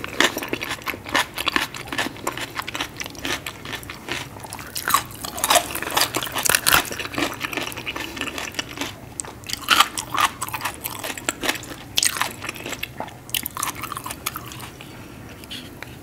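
A woman chews food loudly and wetly, close to a microphone.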